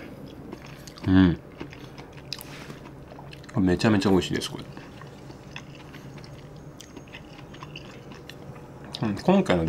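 A spoon scrapes and stirs through thick, gooey food in a bowl.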